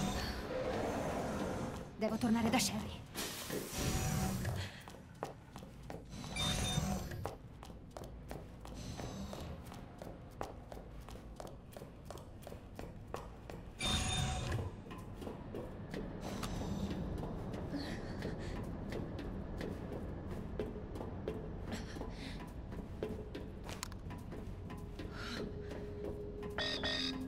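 Quick footsteps run across a hard metal floor.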